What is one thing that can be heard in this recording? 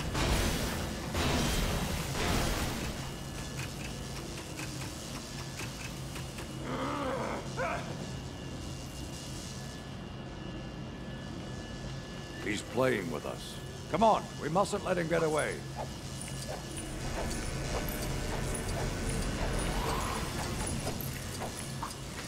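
Electricity crackles and sparks.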